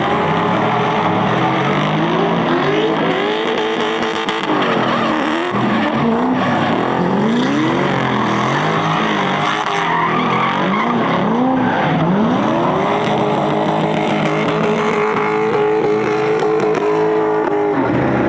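Tyres squeal on wet asphalt.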